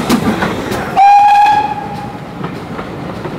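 A steam whistle gives a short, loud shriek.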